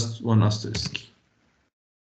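A man speaks briefly through an online call.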